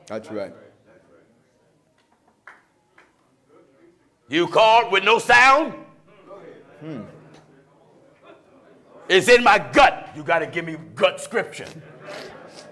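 A man preaches loudly and with passion through a microphone in an echoing hall.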